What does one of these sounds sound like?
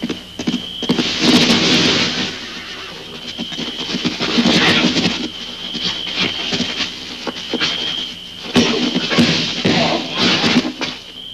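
Men grunt and scuffle in a fight.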